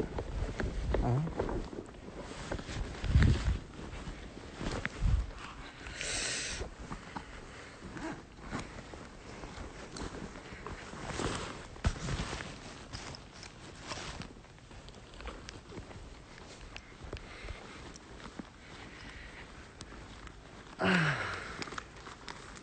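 A young woman speaks softly, close to a phone microphone.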